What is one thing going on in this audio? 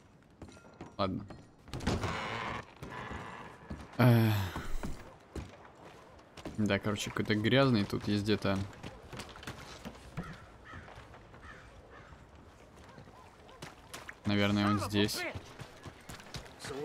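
Boots thud on wooden boards and then on soft mud.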